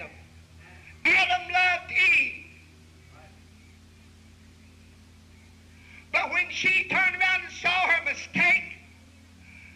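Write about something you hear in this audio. A man speaks calmly and clearly through a microphone, in short bursts with pauses.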